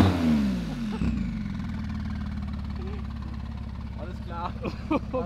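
A sports car engine idles with a low, steady rumble.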